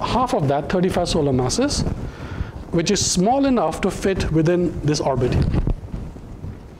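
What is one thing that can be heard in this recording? A man lectures with animation through a microphone.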